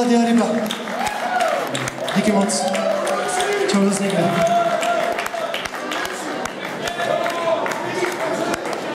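A man sings into a microphone over the band.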